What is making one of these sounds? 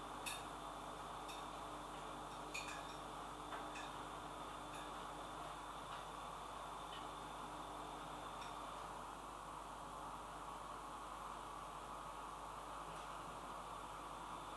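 Objects click and rustle softly as they are handled on a table.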